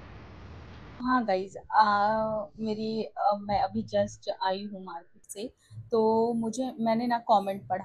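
A young woman talks with animation close by, indoors.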